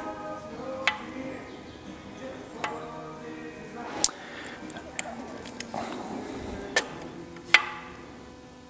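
Metal parts clink and knock as a gearbox is worked on by hand.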